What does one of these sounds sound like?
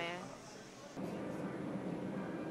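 A broom sweeps across a tiled floor.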